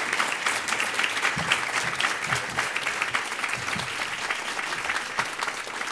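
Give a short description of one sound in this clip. An audience applauds steadily in a room.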